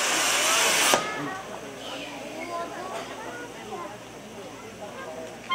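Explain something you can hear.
Fireworks crackle faintly.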